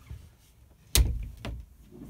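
A wooden door knocks shut.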